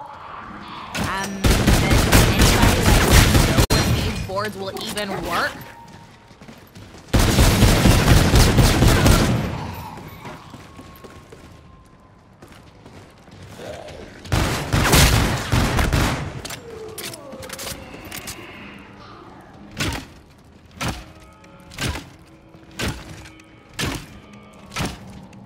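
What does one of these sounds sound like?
Gunfire rings out in loud rapid bursts, then in single spaced shots.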